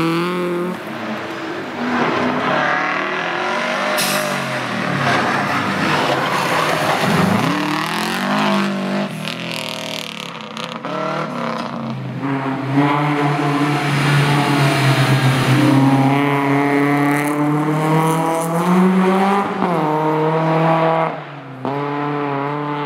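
A rally car engine roars and revs hard as it speeds past.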